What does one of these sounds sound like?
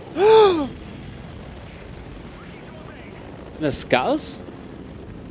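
A man exclaims loudly into a close microphone.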